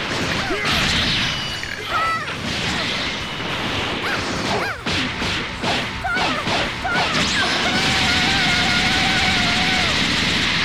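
Energy blasts whoosh and explode in a fast fight.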